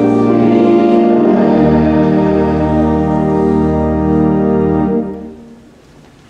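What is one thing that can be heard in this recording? A congregation sings a hymn together in a large echoing hall.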